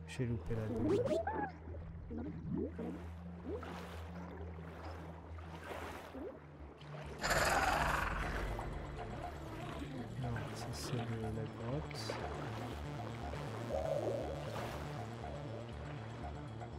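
Water swishes softly as a diver swims underwater.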